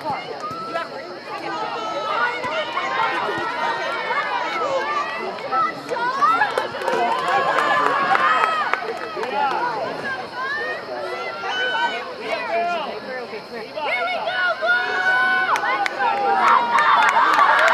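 A group of young women shout and cheer nearby, outdoors.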